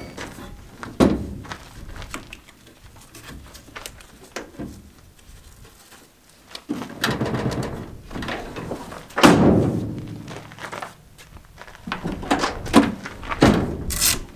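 A metal rack clanks as it slides along a truck bed.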